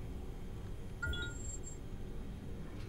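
A menu gives short soft beeps.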